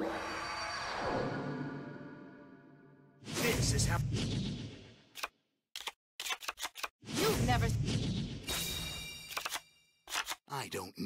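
Game sound effects whoosh and chime as cards are dealt.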